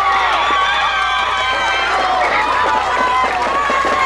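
A crowd of spectators cheers.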